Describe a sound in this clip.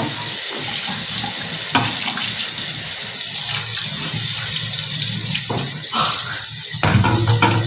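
Hands rub and scrub a wet metal tray.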